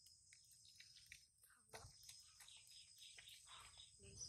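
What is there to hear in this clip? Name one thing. Liquid sloshes in a plastic bottle as a person shakes it.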